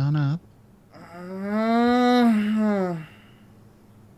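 A young woman calls out in a long, drawn-out exclamation that rises and falls.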